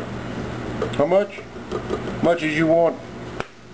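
A plastic cap on a spice jar clicks open.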